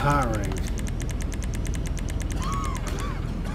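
Soft electronic menu blips tick quickly, one after another.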